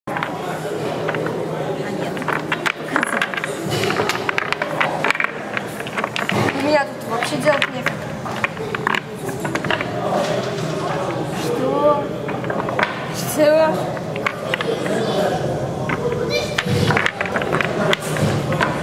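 Wooden blocks slide across a tabletop.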